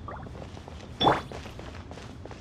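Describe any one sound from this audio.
A bright magical shimmer rings out briefly.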